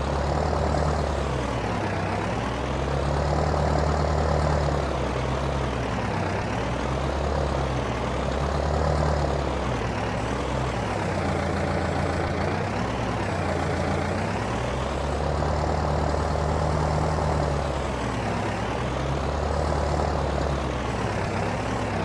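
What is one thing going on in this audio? A tractor engine rumbles steadily, rising and falling in pitch.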